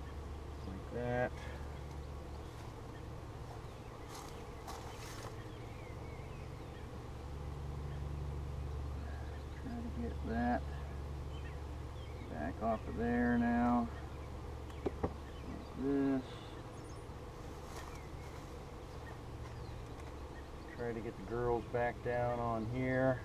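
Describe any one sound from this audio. A man speaks calmly nearby, in short bursts.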